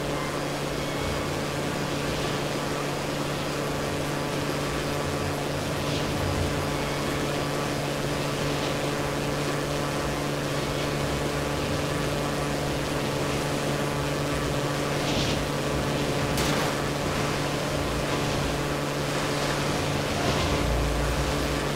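Water splashes against a boat's hull.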